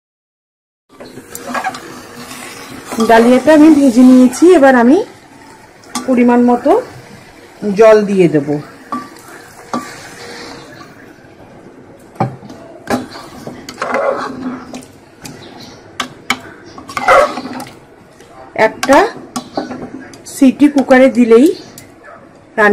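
A metal spoon scrapes and clinks against a metal pot.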